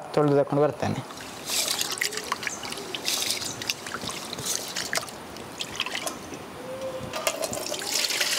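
Hands swish and splash in a pot of water.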